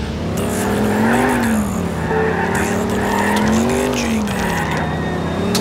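A vehicle's engine hums and revs up and down as it drives.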